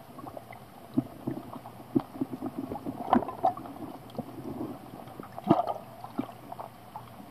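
Water knocks and gurgles, heard underwater.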